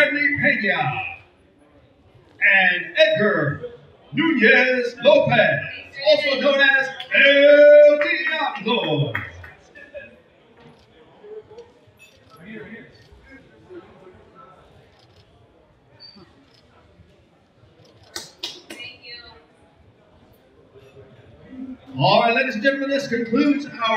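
A middle-aged man announces with animation through a microphone over a loudspeaker.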